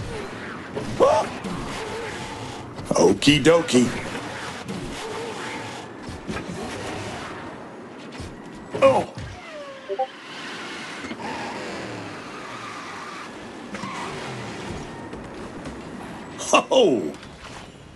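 Boost effects whoosh with falling sweeps.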